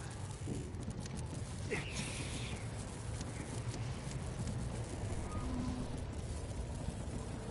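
Wind howls steadily in a low rumble.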